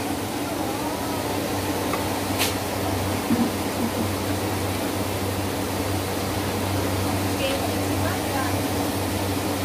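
A metal ladle clinks and scrapes against a pot.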